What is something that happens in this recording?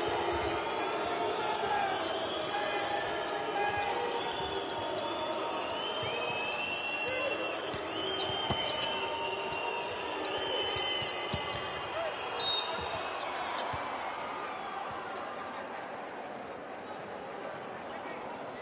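A crowd in a large echoing arena cheers and chatters throughout.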